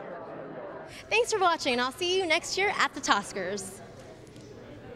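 A young woman speaks brightly into a microphone, close by.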